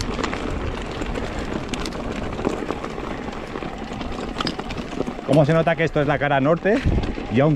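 Bicycle tyres crunch and rumble over a loose, stony trail.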